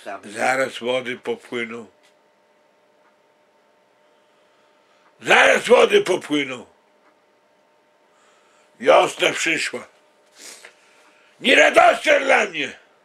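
A man speaks close by in short, emphatic bursts with pauses between.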